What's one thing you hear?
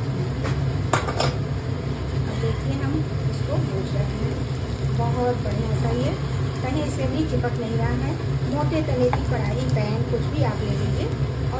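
A metal spoon scrapes and clinks against a pan while stirring.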